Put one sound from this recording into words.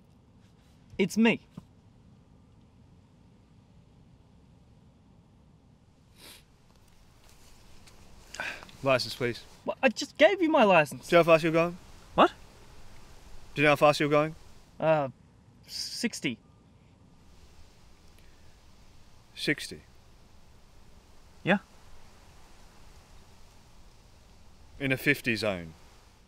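A man speaks in a firm, questioning tone close by.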